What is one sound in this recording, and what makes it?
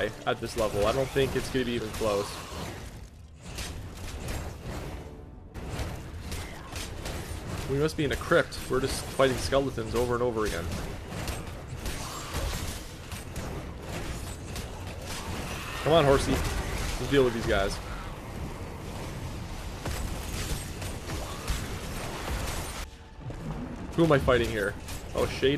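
Weapons strike and magic blasts burst in a fast fight.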